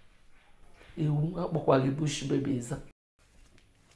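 A middle-aged woman speaks emotionally and close by.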